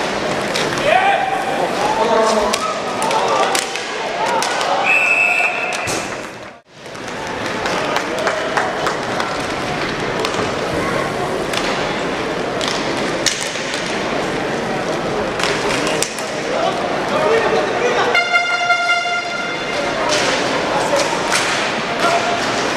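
A crowd cheers and murmurs in a large echoing arena.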